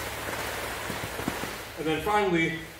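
Heavy ropes swish and slap against the floor.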